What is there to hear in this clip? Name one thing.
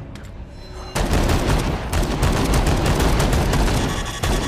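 Rapid gunfire blasts loudly and without a break.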